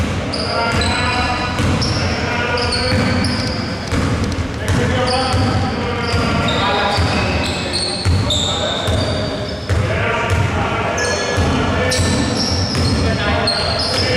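Young men call out to each other across an echoing hall.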